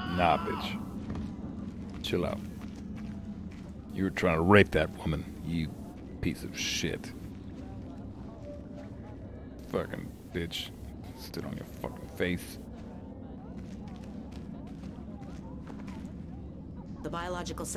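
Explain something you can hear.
A man speaks casually into a nearby microphone.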